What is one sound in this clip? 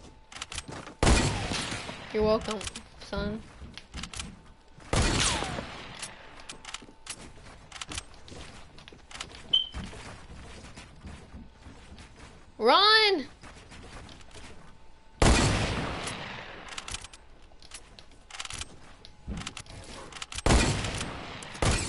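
Gunshots crack repeatedly.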